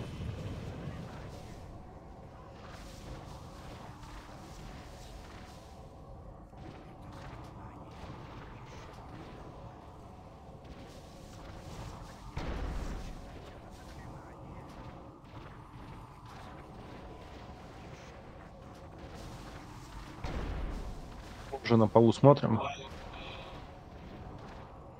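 Magic spells crackle and whoosh during a fantasy battle.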